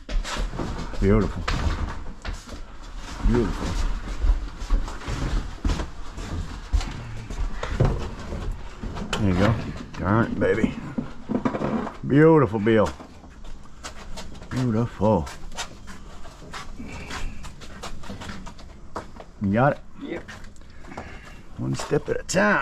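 A heavy appliance scrapes and bumps as it is moved.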